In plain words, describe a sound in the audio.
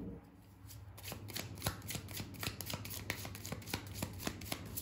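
Playing cards flick and rustle as a deck is shuffled in the hand.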